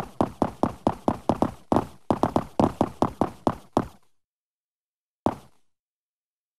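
Footsteps thud quickly on a hollow wooden floor.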